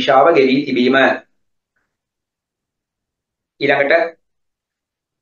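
A man reads aloud calmly through a microphone, in short phrases.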